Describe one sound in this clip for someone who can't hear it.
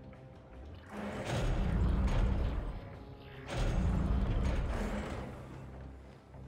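A heavy metal door grinds and slides open.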